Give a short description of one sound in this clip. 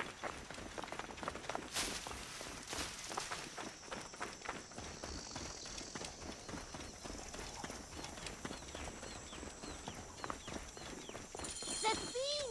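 Running footsteps crunch quickly over dry gravel and sand.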